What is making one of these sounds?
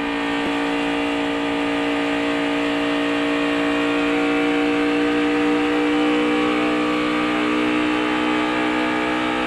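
A race car engine roars loudly at high revs, rising slightly in pitch.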